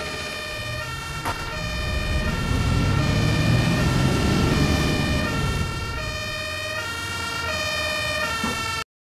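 A bus engine rumbles, growing louder and then settling back to an idle.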